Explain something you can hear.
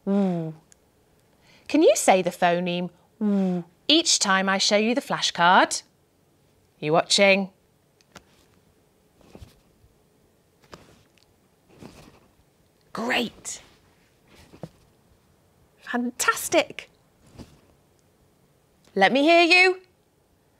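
A young woman speaks clearly and slowly, close to the microphone, with pauses between words.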